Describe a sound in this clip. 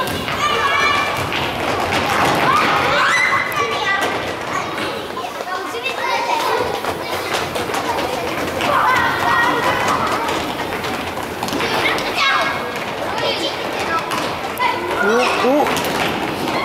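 A ball thuds when kicked across a wooden floor.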